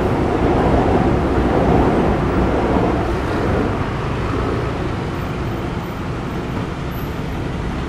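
A motor scooter engine putters past close by.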